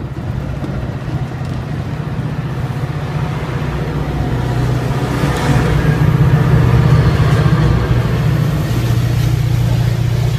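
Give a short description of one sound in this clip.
A train rolls past close by, its wheels clattering on the rails.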